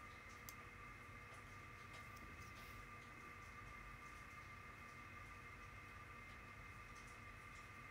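A comb brushes softly through hair.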